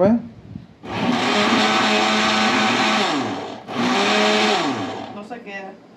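A blender whirs loudly in short bursts.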